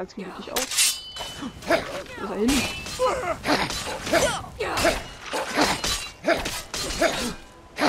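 Steel blades clash and clang in a fight.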